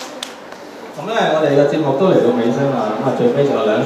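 A man speaks into a microphone, heard through a loudspeaker.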